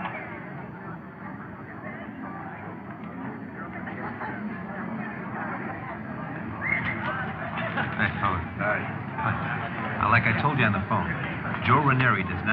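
A crowd of people chatters in a large hall.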